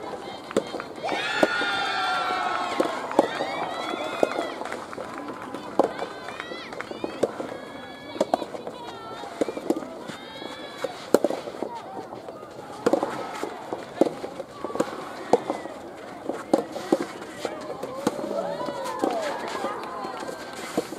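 Rackets strike a soft tennis ball back and forth with sharp pops.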